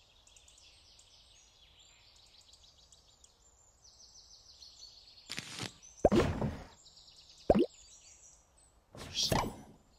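Game menu sounds click and chime as cards are scrolled.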